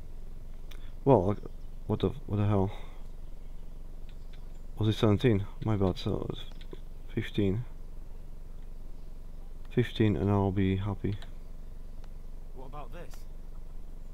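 A man speaks calmly, close by.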